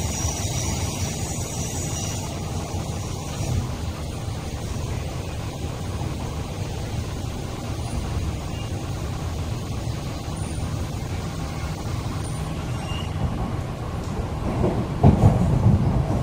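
A train rumbles steadily along the track, heard from inside the carriage.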